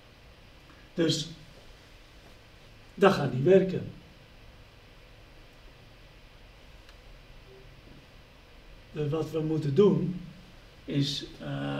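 A middle-aged man speaks calmly in short bursts, close by.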